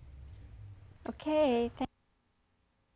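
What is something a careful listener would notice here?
An older woman speaks briefly and calmly into a close microphone.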